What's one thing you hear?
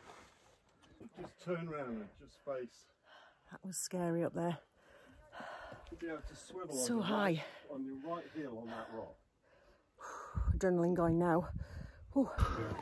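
A middle-aged woman talks close by, sounding slightly out of breath.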